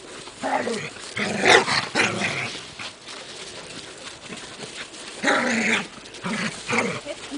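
Puppies tug and rustle a plastic tarp on snow.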